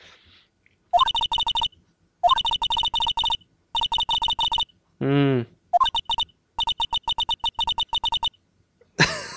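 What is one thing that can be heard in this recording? Short electronic blips patter rapidly in quick bursts.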